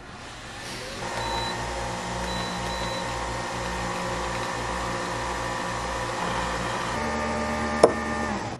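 A coffee machine pump hums and pulses as coffee pours.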